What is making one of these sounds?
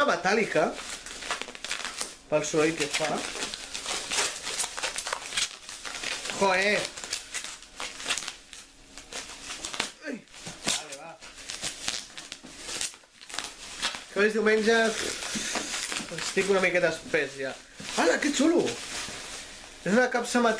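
Bubble wrap and packaging crinkle and rustle.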